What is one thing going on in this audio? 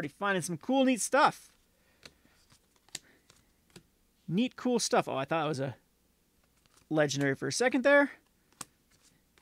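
Playing cards slide and tap against each other.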